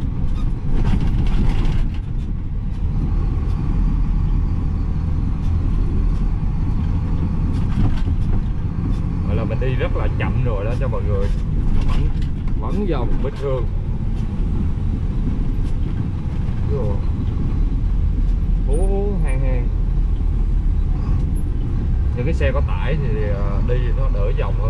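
A heavy truck engine rumbles steadily from inside the cab.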